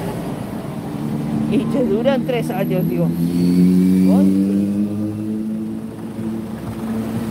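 A car engine hums as it slowly pulls up nearby.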